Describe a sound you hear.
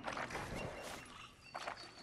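A shallow stream flows gently.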